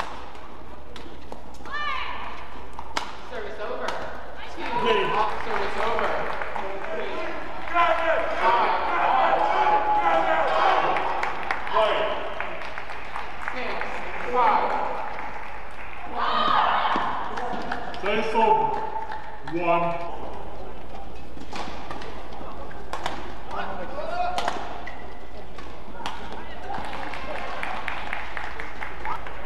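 Rackets smack a shuttlecock back and forth in a quick rally.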